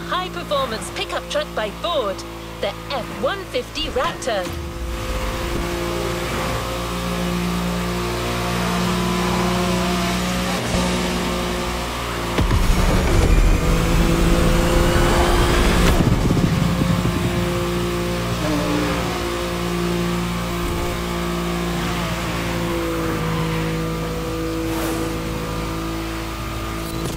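A sports car engine drones steadily at high speed.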